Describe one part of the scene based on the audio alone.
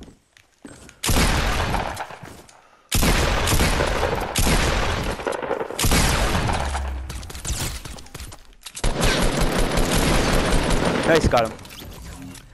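Gunshots fire in loud rapid bursts.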